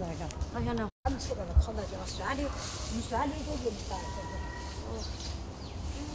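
A panda shuffles through dry grass with soft rustling.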